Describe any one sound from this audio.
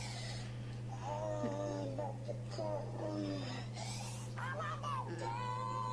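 A dog whines and howls in a high, wavering voice over a small speaker.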